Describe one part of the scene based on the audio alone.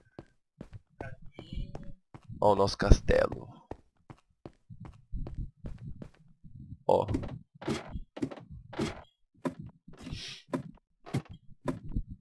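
Footsteps tread steadily on stone.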